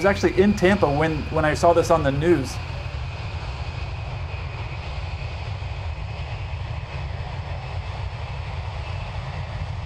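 Jet engines roar steadily as a large plane rolls along a runway.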